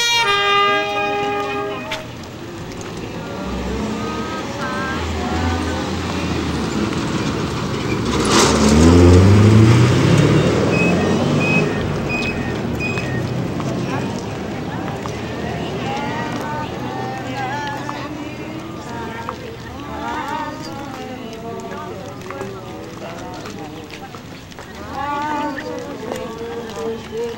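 Many footsteps shuffle on a paved street.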